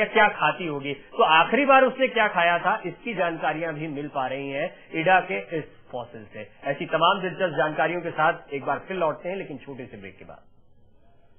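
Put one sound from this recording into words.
A man speaks steadily, close to a microphone.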